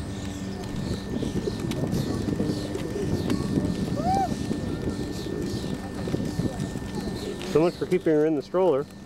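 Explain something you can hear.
A pushchair's wheels rumble over a gravel path.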